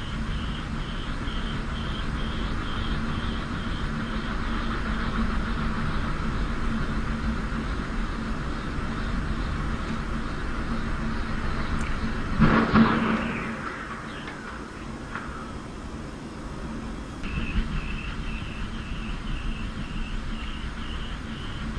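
Strong wind roars outdoors.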